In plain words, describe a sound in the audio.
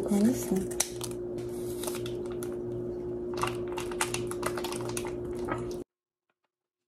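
A plastic packet crinkles and rustles.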